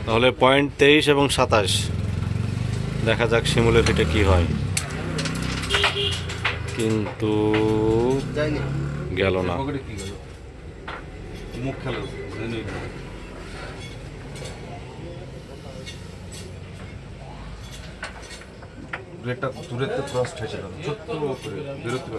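Young men talk and call out with animation close by.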